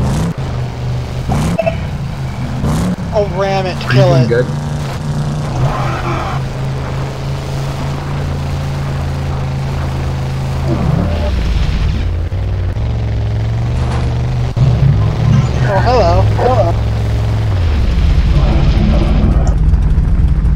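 Tyres rumble over rough gravel.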